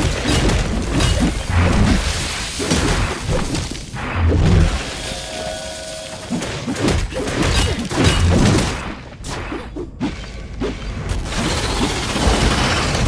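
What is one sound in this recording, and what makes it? A blade slashes and clangs in quick strikes.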